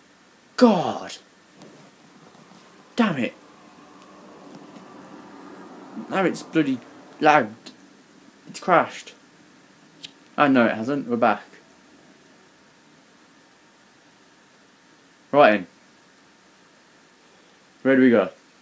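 A young man talks in short bursts close to a microphone, with animation.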